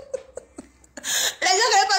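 A woman laughs, close up through a phone microphone.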